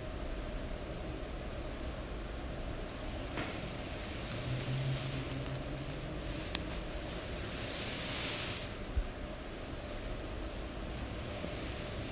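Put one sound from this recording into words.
Hands rub and slide softly over oiled skin.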